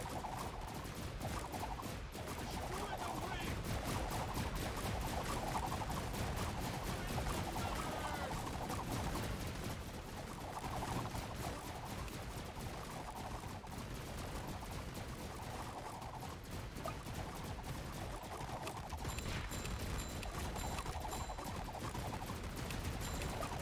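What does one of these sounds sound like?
Rapid gunfire crackles without pause.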